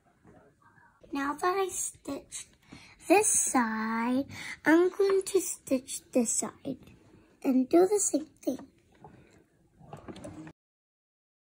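A young girl speaks close by with animation.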